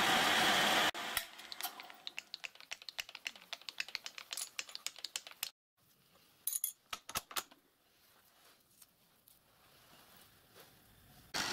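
Metal tools clink and clatter as they are handled.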